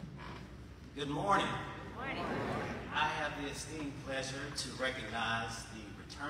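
A man speaks through a microphone and loudspeakers in a large echoing hall.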